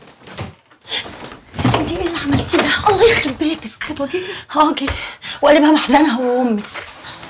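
A middle-aged woman answers loudly and angrily.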